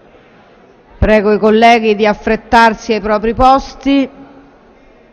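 A woman speaks briefly into a microphone, amplified in a large hall.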